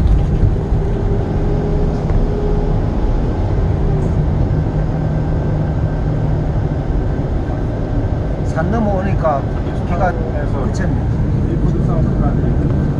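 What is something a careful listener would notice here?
A vehicle engine rumbles steadily with road noise from inside.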